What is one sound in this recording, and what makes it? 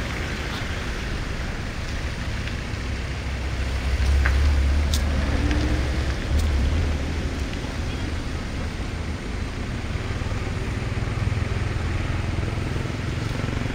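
An elephant tears up grass with its trunk.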